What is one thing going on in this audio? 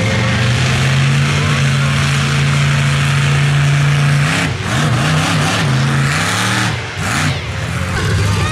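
A monster truck engine roars loudly, revving up and down.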